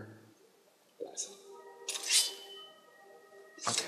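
A magic staff hums and rings out.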